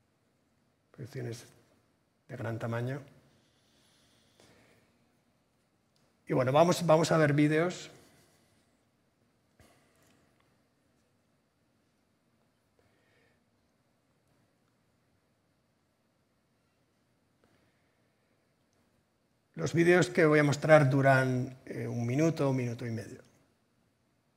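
A man speaks calmly into a headset microphone, in short bursts with pauses.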